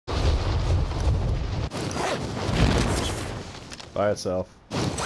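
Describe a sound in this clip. Wind rushes loudly past during a fast fall through the air.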